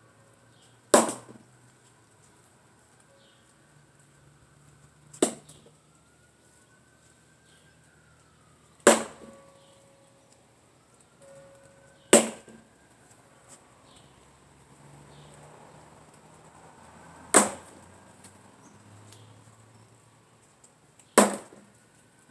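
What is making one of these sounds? A sword strikes a wooden post with sharp knocks.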